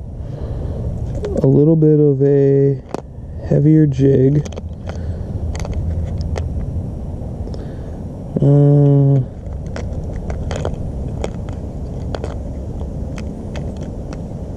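Small plastic items click and rattle in a plastic box.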